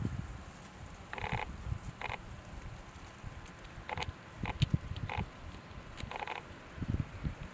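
Wind blows outdoors, buffeting in low gusts.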